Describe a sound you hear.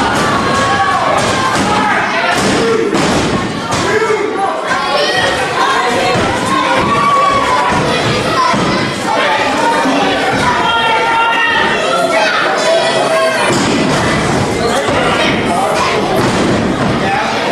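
Bodies thud heavily on a wrestling ring's mat.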